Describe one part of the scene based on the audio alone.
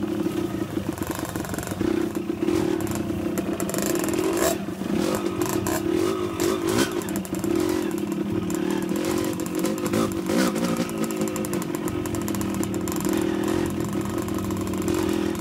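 A dirt bike engine revs and putters close by.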